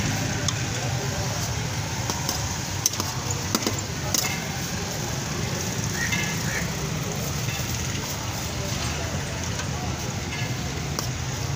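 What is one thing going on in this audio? A metal spoon clinks against bowls.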